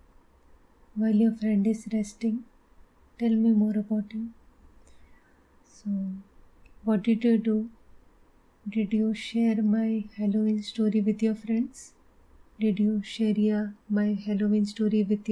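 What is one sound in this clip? A woman speaks calmly and warmly, close to a microphone, as if on an online call.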